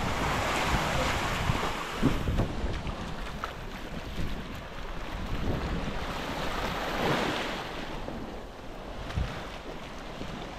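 Small waves wash gently onto a sandy shore.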